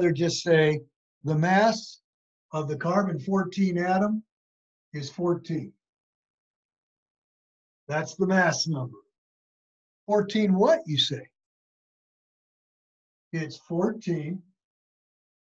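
An elderly man speaks calmly and explains, close by.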